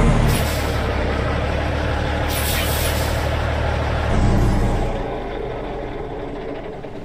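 A truck engine hums low and steady, then quietens.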